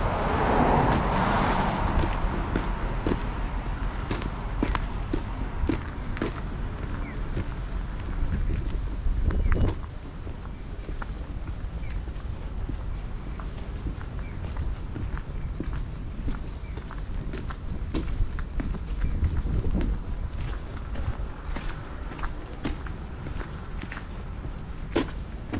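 Footsteps crunch and scrape steadily on a snowy pavement.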